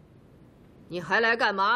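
A woman asks a startled question, close by.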